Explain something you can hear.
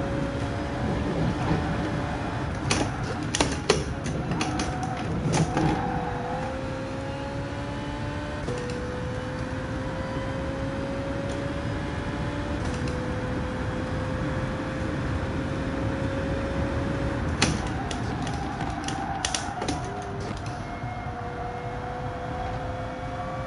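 A racing car engine roars and shifts through gears.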